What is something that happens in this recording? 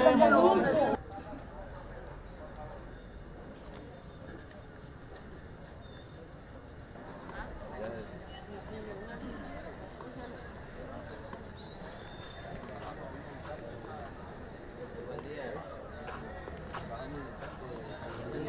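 A crowd murmurs outdoors in the distance.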